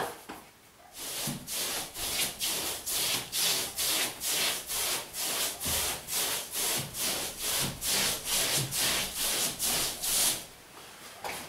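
A paper-hanging brush sweeps in rhythmic strokes across wallpaper on a wall.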